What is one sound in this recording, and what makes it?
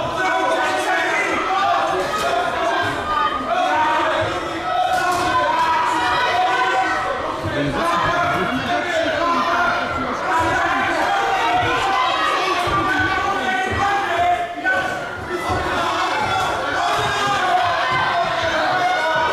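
Gloved punches land with dull thuds.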